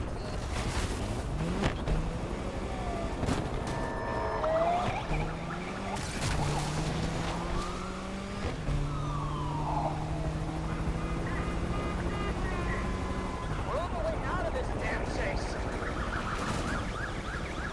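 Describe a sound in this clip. A car engine revs hard and shifts through gears.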